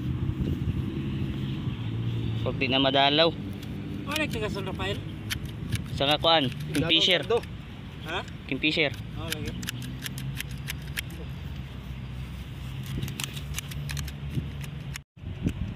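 Hand shears snip at grass close by.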